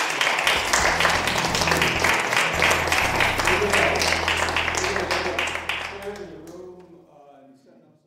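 An audience claps in a room, then the applause fades away.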